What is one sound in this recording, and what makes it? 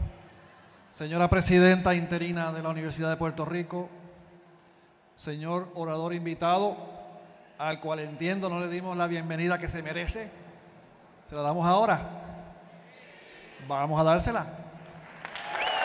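A man speaks slowly and clearly through a microphone in a large hall.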